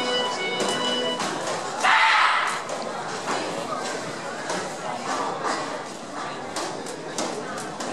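Performers shout sharply in unison as they strike.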